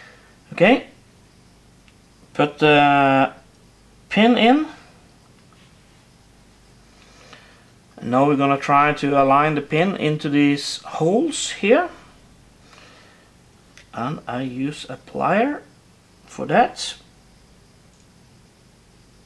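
Small metal gun parts click softly as they are fitted together.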